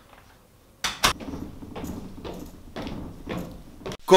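Footsteps thump on stairs.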